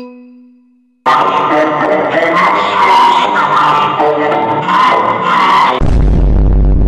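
A young boy shouts and wails loudly.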